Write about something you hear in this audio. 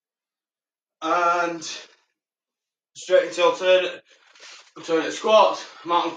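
A young man talks to the listener, giving exercise instructions.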